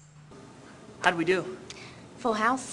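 A young woman speaks on a stage.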